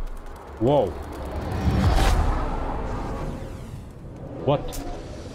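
A deep rushing whoosh swells and slowly fades.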